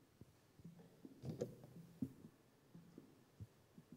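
A microphone bumps and knocks on a table.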